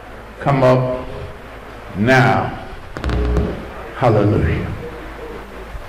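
An older man speaks loudly through a microphone, echoing in a large hall.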